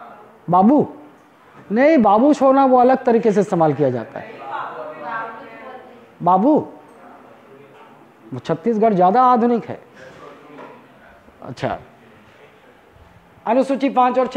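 A man lectures with animation, close by.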